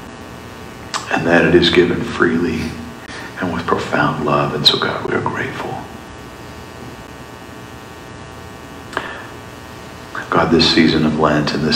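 A man speaks calmly through a microphone in a large echoing room, with pauses between phrases.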